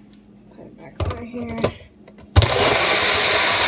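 A plastic blender cup clicks into its base.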